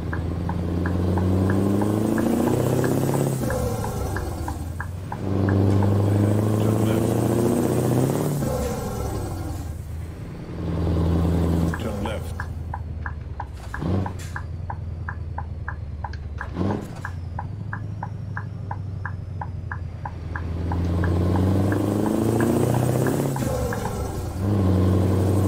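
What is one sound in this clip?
A truck engine drones and revs up through the gears, rising in pitch and dropping at each shift.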